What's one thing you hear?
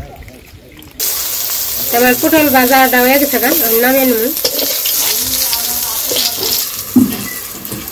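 Oil sizzles loudly in a hot pan.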